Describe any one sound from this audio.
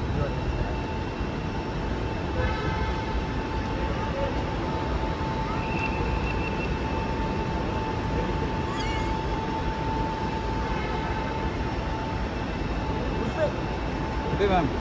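Men and women chatter nearby in a busy, echoing entrance.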